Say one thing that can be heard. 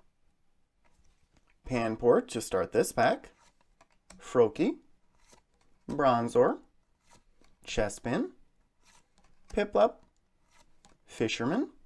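Trading cards softly rustle and flick as they are handled.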